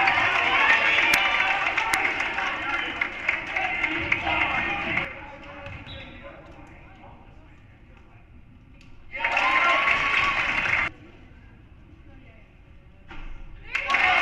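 A crowd cheers and shouts in an echoing gymnasium.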